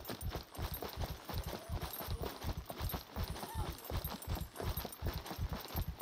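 Footsteps thud steadily on a stone path.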